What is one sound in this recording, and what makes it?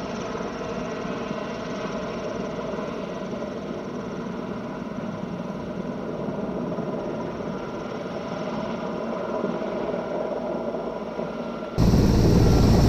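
A helicopter's rotor thumps and its engine drones steadily in the distance.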